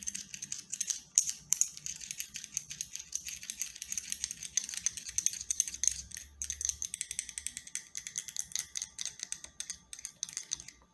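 Fingernails tap and scratch on a small metal object, very close by.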